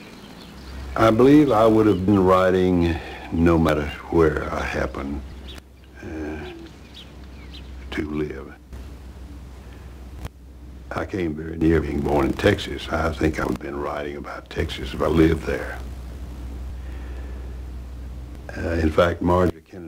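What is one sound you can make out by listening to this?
An elderly man speaks calmly and slowly, close by.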